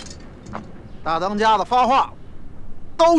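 A man speaks sternly and loudly outdoors.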